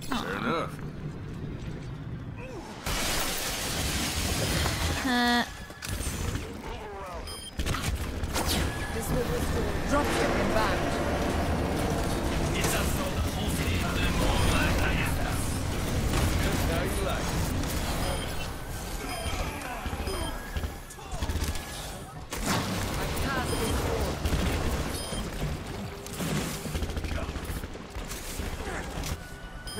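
Guns fire in rapid bursts with explosions in a video game battle.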